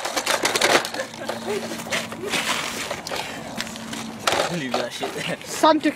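A plastic toy clatters on the ground.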